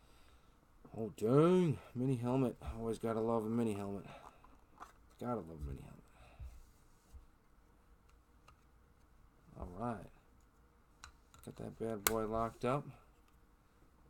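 Plastic card cases click and slide on a table.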